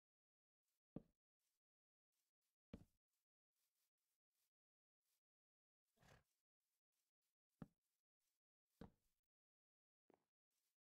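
Blocks are placed with short soft thuds in a game.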